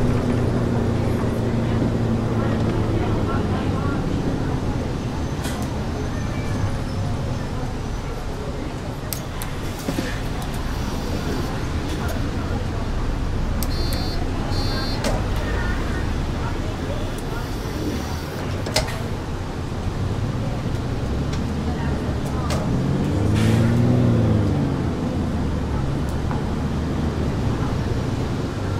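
A bus engine rumbles steadily at low pitch.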